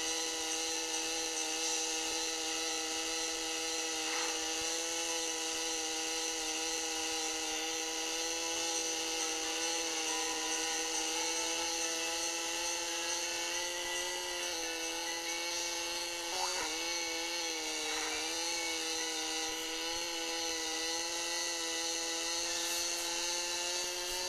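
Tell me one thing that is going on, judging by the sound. A kart engine drones steadily, its pitch wavering slightly.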